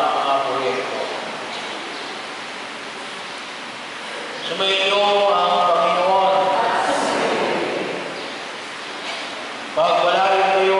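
A middle-aged man intones a prayer through a microphone and loudspeakers.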